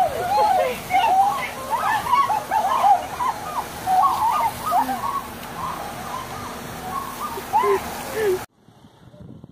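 Water sprays from a fire hose with a steady hiss.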